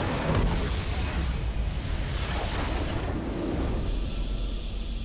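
A deep explosion booms and rumbles loudly.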